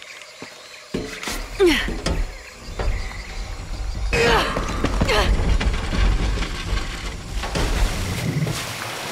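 A heavy low rumble and crash sound as something falls.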